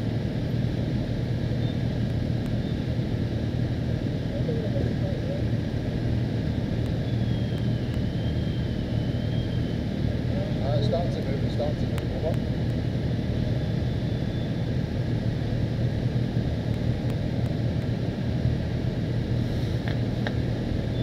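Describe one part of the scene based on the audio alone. Motorcycle engines idle and rumble steadily close by.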